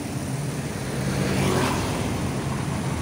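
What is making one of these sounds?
Traffic passes by on a street, louder for a moment.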